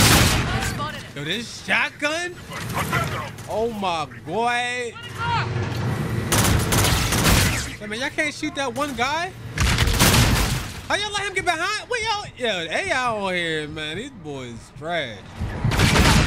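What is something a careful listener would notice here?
A young man talks and exclaims excitedly into a close microphone.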